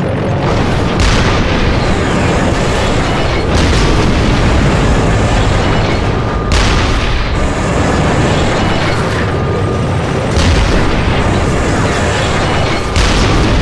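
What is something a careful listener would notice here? Tank cannon shots boom with loud blasts.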